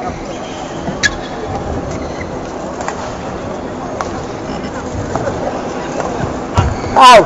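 Rackets smack a shuttlecock back and forth in a large hall.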